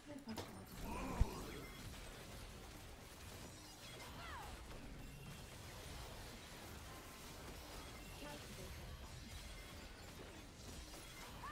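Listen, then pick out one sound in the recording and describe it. Game battle sound effects clash and zap.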